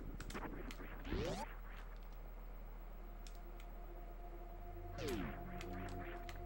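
A video game sound swoops sharply in pitch.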